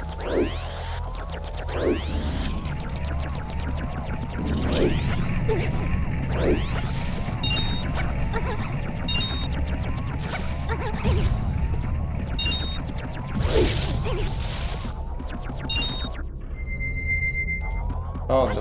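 Cartoonish springy sound effects repeat as a game character hops.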